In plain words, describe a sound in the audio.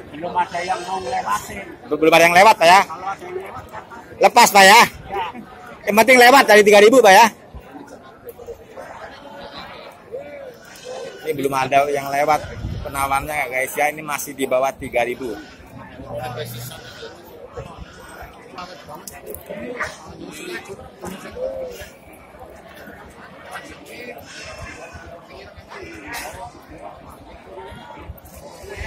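Men talk nearby in a busy outdoor crowd.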